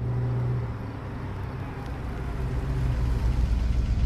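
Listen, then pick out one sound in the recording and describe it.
A car engine rumbles as a car approaches.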